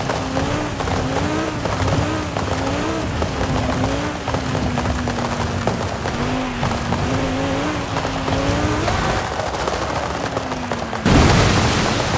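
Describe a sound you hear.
Tyres rumble over a rough dirt track.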